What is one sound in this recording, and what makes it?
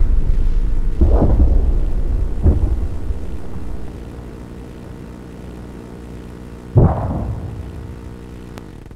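Explosions boom in the distance, rumbling away.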